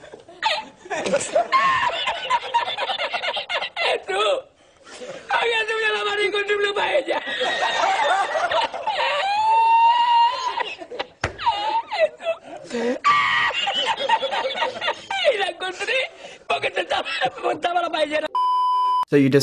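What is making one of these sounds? An elderly man laughs loudly and heartily.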